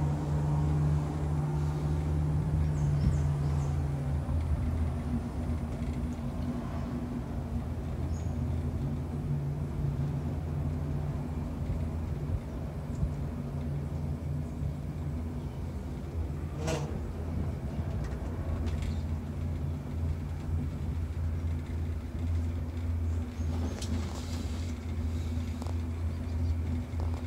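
A cable car hums steadily as it glides along its cable.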